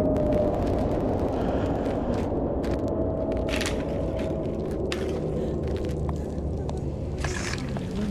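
A campfire crackles and pops nearby.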